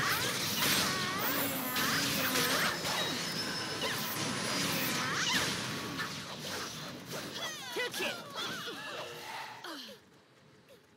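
Weapons clash and strike repeatedly.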